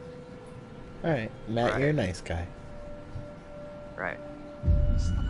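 A young man speaks quietly and hesitantly.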